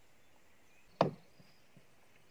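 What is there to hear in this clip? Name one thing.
A rod knocks against a wooden boat.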